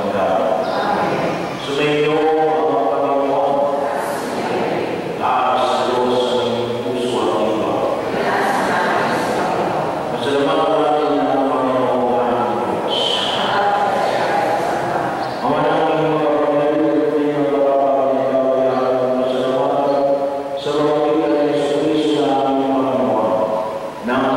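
A man chants in a sung voice through a microphone, echoing in a large hall.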